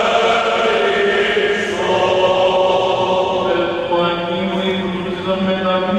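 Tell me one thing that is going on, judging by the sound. A choir of elderly men chants together in a large echoing church.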